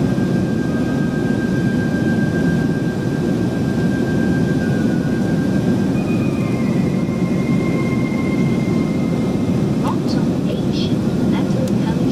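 A jet plane's engines roar with a steady, deep rumble inside the cabin.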